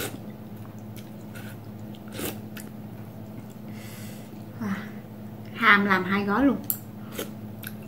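A young woman slurps noodles loudly.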